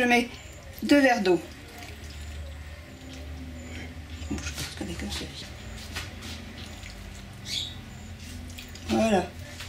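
Water pours from a glass into a bowl.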